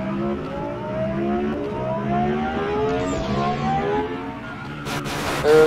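A car engine revs repeatedly, rising in pitch with each gear.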